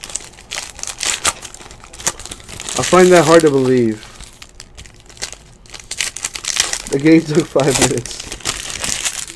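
Foil wrappers crinkle and rustle between fingers.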